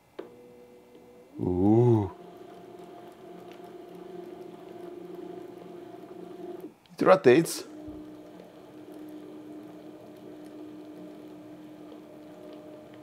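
A small electric motor hums steadily.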